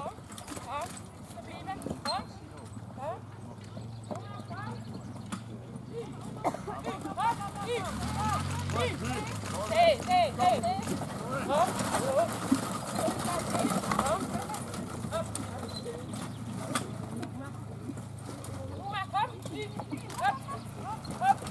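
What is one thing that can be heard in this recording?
Carriage wheels rumble over grass.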